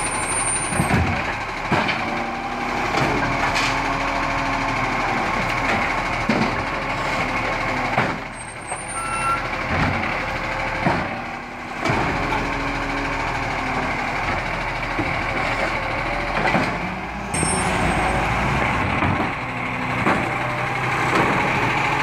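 A bin thuds and clatters against a truck.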